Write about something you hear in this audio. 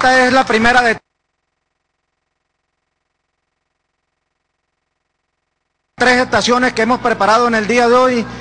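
A crowd of men and women sings loudly together.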